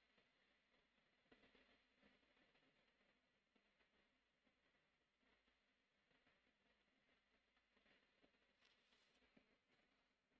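A marker pen squeaks and scratches on paper up close.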